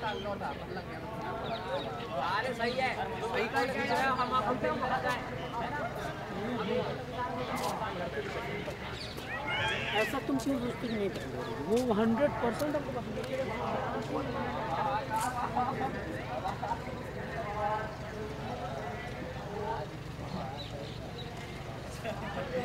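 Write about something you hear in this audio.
Young men talk casually nearby, outdoors.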